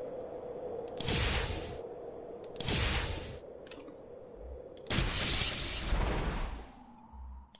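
A magic spell whooshes and shimmers in bursts.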